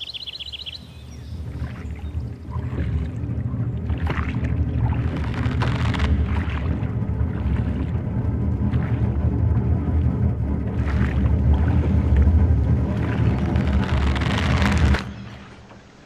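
A stream rushes and splashes past.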